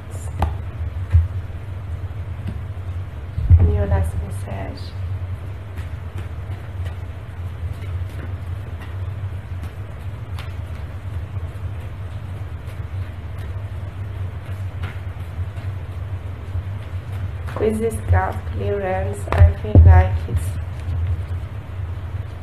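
Cards shuffle and slap onto a table.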